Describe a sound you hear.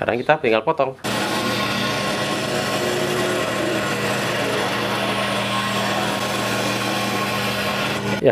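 A scroll saw hums and buzzes steadily as it cuts.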